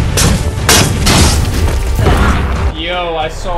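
Gunfire and blows crack loudly in a fight.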